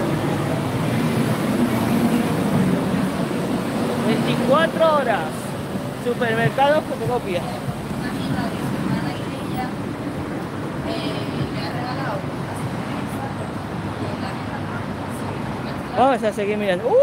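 Distant traffic hums steadily outdoors.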